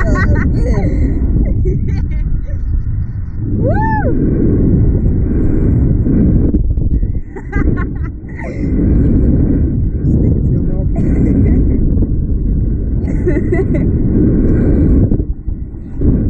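A young woman laughs and screams with delight.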